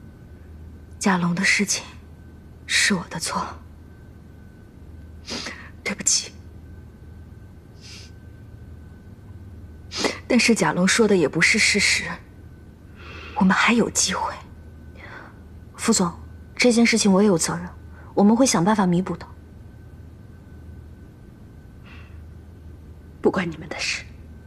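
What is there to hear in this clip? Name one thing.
A middle-aged woman speaks sternly and coldly.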